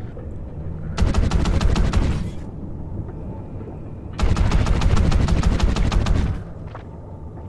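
A rifle fires rapid, muffled bursts.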